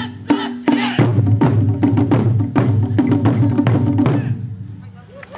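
Large drums boom and pound loudly in a fast rhythm outdoors.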